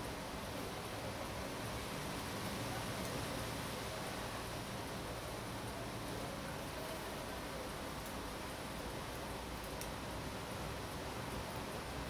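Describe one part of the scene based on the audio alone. A screwdriver scrapes and ticks against a watch movement.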